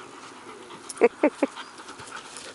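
A dog yelps sharply a few times.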